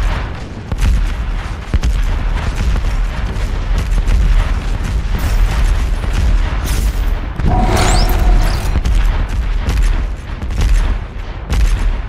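Fireballs whoosh and explode nearby.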